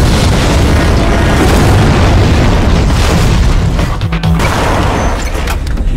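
A truck crashes and overturns with a loud metallic bang.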